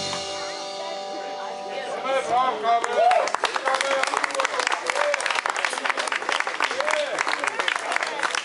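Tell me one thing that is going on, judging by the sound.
Electric guitars play.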